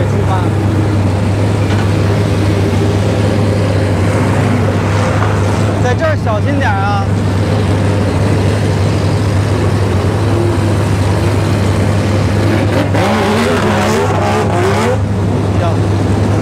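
Race car engines rumble and idle loudly nearby.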